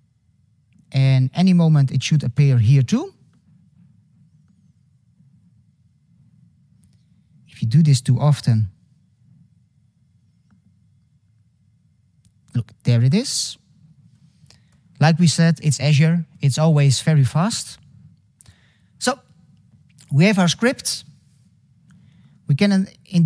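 A young man speaks calmly through a microphone, in short bursts with pauses.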